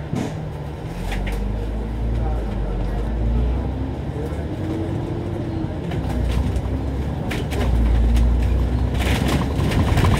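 Tram wheels rumble and clatter along the rails.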